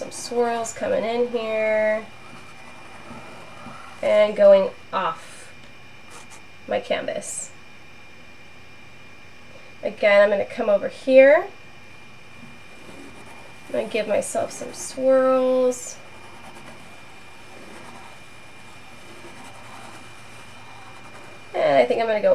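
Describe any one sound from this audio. Chalk scrapes softly across a canvas.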